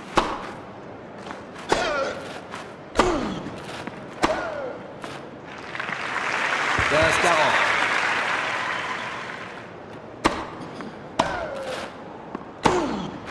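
A tennis ball is struck sharply back and forth with rackets.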